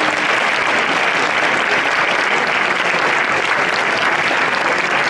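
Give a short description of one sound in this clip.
A crowd applauds steadily in a large echoing hall.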